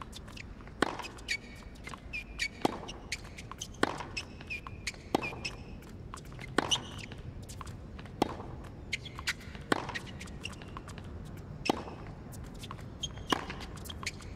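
A tennis ball is hit back and forth with sharp pops of the racket.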